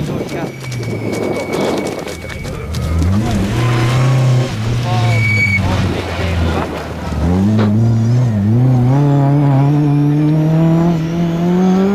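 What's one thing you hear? A rally car engine roars and revs hard, rising and dropping with gear changes.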